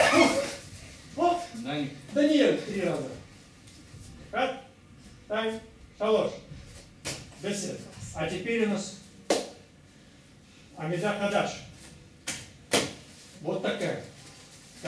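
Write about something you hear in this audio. A man speaks calmly, giving instructions.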